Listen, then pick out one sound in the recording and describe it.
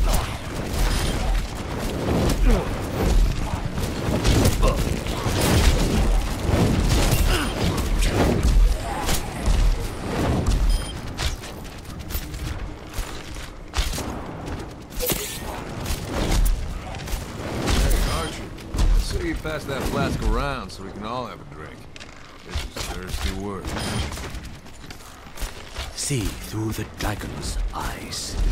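Game arrow shots and gunfire snap repeatedly.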